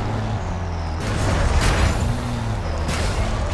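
A truck crashes through branches with a rustling crunch.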